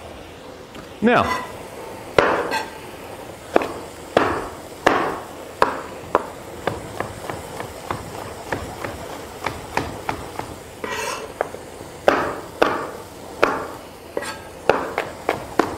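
A knife chops on a cutting board in sharp taps.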